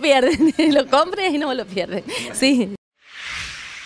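A middle-aged woman speaks cheerfully into a microphone close by.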